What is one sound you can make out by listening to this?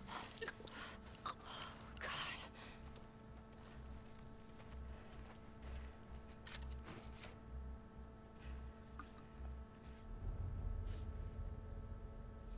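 Tall grass rustles as a person creeps through it.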